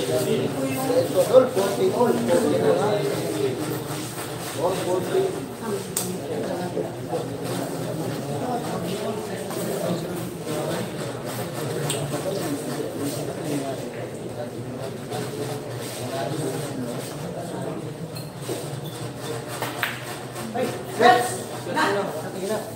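A crowd of young men chatters and murmurs nearby.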